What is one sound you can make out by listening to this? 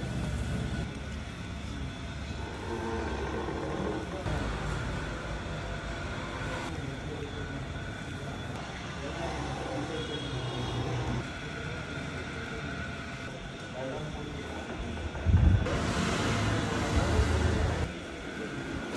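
A wooden oil mill grinds with a low, steady rumble.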